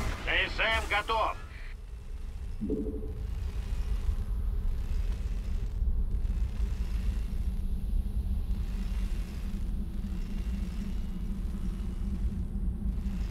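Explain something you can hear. Machinery hums and rumbles low and steadily.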